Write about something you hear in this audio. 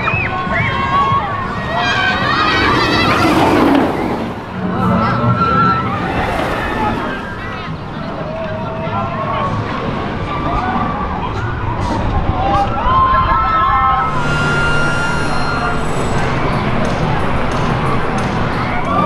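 A roller coaster train roars along its track.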